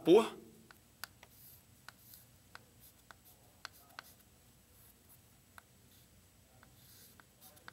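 Chalk taps and scratches on a blackboard.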